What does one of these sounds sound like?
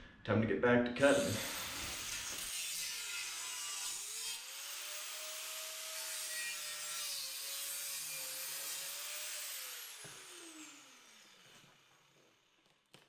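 An angle grinder whines loudly as it cuts metal, then spins down.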